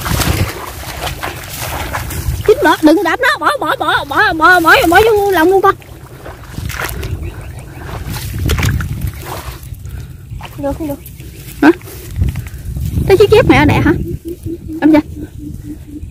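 Dry grass rustles underfoot as a woman moves through a field.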